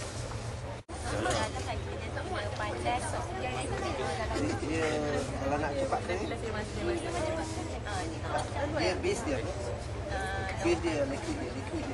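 A middle-aged man talks calmly up close.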